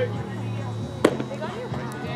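A baseball smacks into a catcher's leather mitt.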